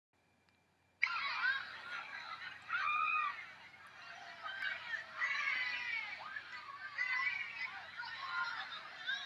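A crowd cheers and screams, heard thinly through a small phone loudspeaker.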